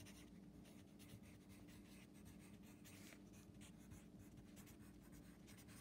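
A pencil scratches as it writes on paper.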